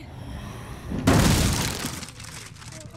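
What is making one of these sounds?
A wooden pallet smashes and splinters with a loud crack.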